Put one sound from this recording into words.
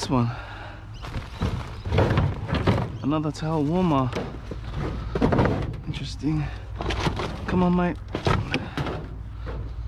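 Plastic and metal items clatter as junk is shifted by hand.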